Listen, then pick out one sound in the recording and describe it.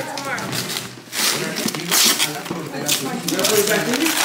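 Wrapping paper rustles and tears.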